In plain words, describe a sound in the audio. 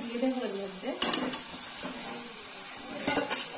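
An aluminium pot clinks against a steel wok.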